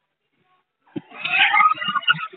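A group of people laugh loudly.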